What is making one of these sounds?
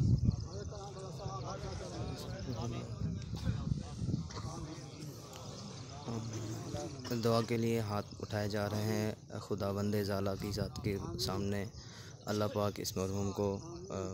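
A man chants a prayer loudly through a loudspeaker.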